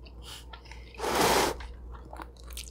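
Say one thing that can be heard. Cheesy pizza crust crunches and tears close to a microphone.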